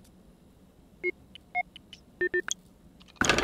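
Keypad buttons beep as a code is entered.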